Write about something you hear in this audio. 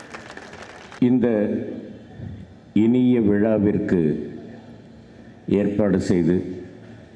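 An elderly man speaks loudly into a microphone over loudspeakers.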